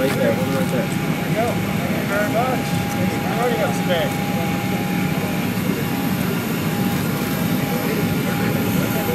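Airport ground equipment hums steadily outdoors.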